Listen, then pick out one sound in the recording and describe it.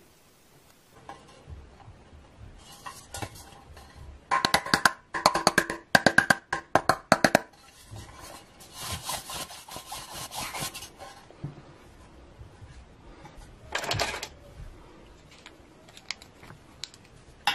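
Plastic doll parts click and snap as they are handled.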